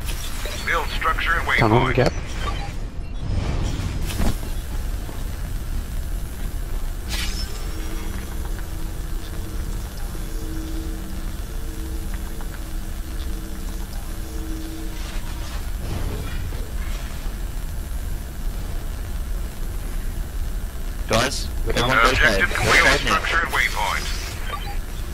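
An energy tool buzzes and crackles.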